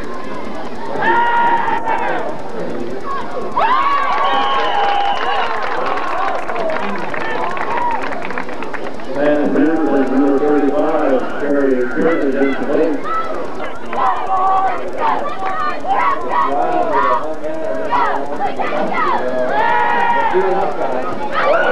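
Men shout and call out nearby.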